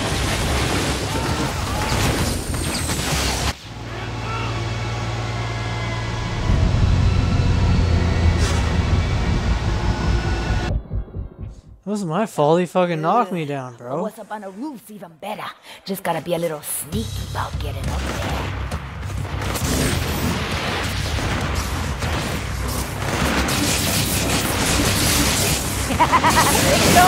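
Electricity crackles and zaps in sharp bursts.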